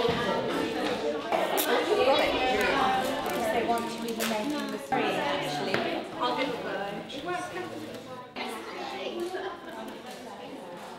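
Children and adults chatter together in a busy room.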